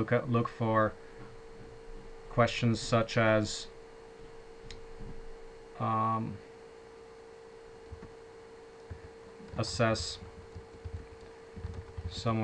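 A man talks in short bursts over an online call.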